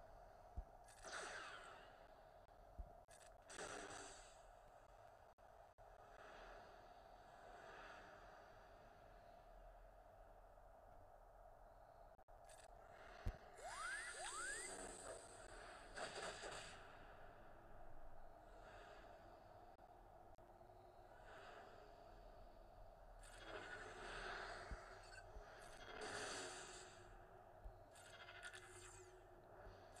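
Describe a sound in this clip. Lightsabers hum and clash in a battle.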